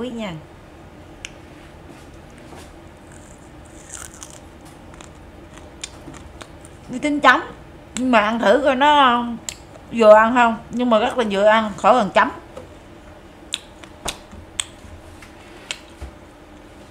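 A young woman chews and smacks her lips loudly.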